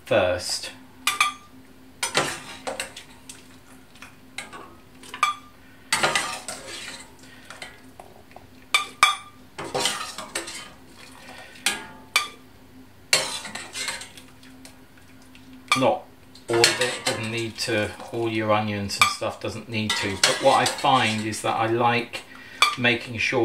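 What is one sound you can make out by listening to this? Cooked vegetables drop with soft thuds into a glass jug.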